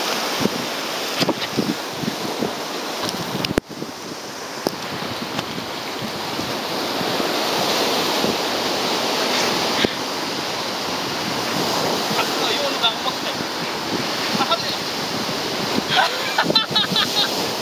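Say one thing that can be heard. Waves wash and splash against rocks outdoors.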